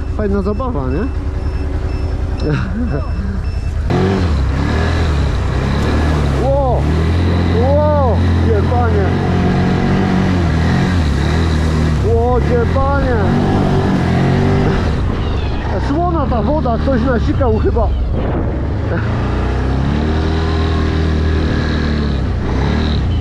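A quad bike engine roars and revs up and down.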